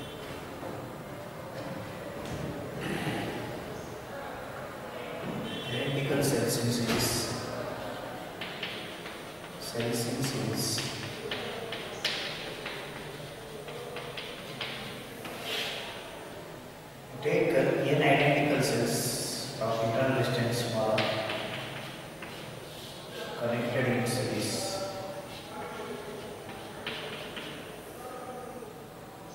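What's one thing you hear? A man lectures calmly in a room with some echo.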